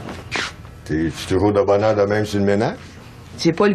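A man speaks calmly from close by.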